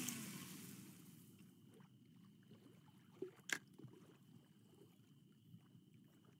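A fishing reel clicks as it winds in line.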